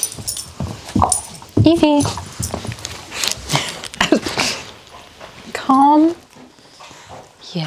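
Dogs scuffle and play on the floor.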